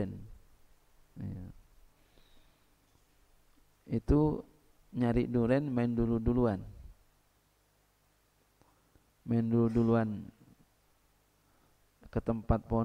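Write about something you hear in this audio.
A man speaks calmly into a microphone in bursts, with long pauses.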